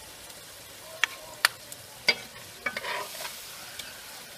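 A metal spoon clinks against a metal pan.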